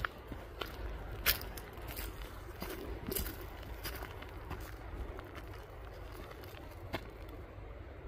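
Footsteps crunch on a dirt forest path.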